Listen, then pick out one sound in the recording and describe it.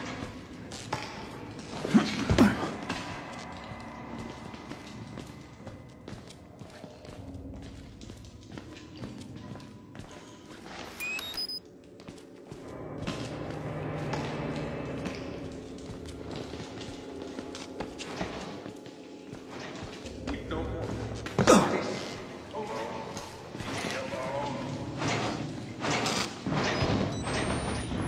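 Footsteps scuff slowly across a concrete floor.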